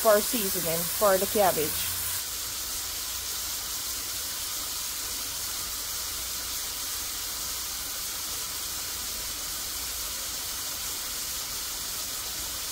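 Food sizzles steadily in a hot pan.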